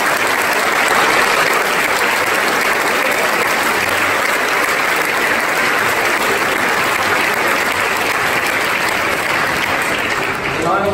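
A large crowd claps and cheers loudly in an echoing hall.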